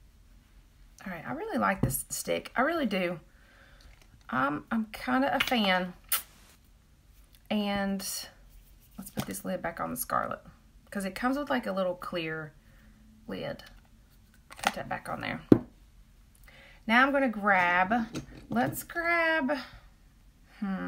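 A woman speaks calmly and close up.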